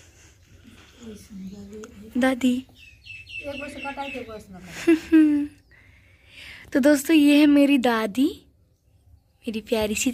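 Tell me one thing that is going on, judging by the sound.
An elderly woman speaks close by, with animation.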